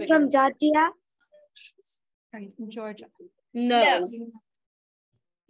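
A young boy talks with animation over an online call.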